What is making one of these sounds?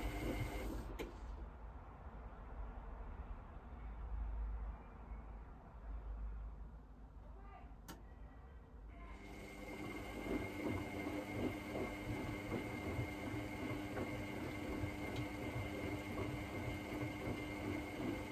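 Water sloshes and splashes inside a washing machine.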